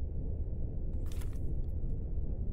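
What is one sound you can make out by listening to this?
A tablet is set down on a hard counter with a soft clack.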